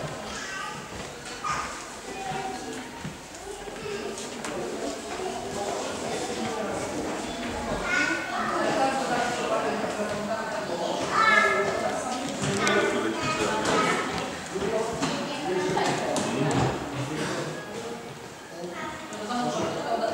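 Several adults and children talk and chatter nearby in a large, echoing hall.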